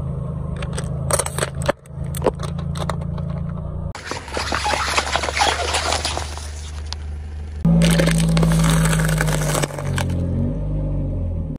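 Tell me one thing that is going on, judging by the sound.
A car tyre rolls over plastic cups, crushing them with sharp cracks and pops.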